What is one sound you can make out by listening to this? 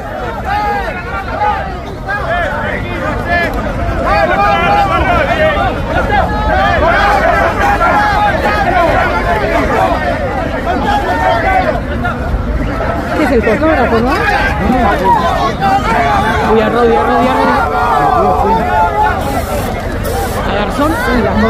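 A crowd of men and women shout and yell loudly and angrily nearby.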